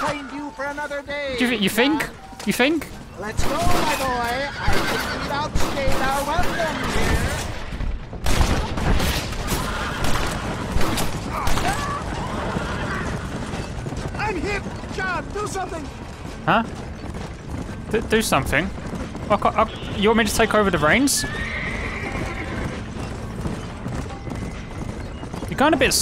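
Horses' hooves clatter at a run.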